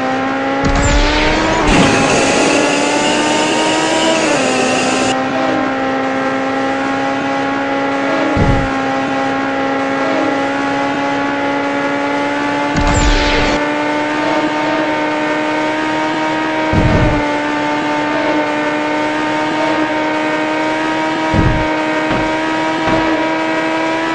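Passing cars whoosh by in short bursts.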